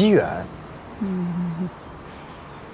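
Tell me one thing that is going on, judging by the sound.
A young woman speaks softly up close.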